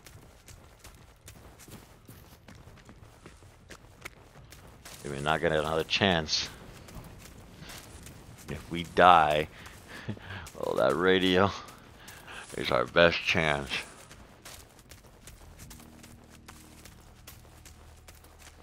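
Footsteps crunch through snow and undergrowth.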